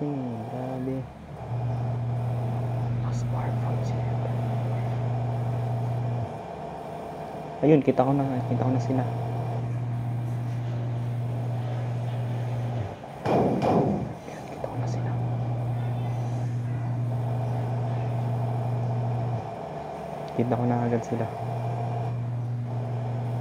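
A bus engine drones steadily at speed.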